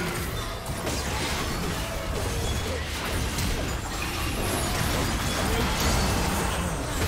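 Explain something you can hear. Magic spell effects crackle and boom in a fast battle.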